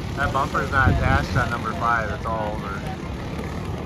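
A man's voice announces through a loudspeaker outdoors.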